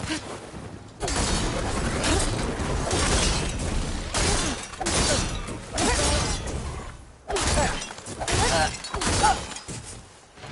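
Metal clangs and crashes loudly during a fight.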